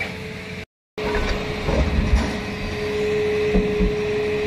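A heavy excavator engine rumbles steadily nearby.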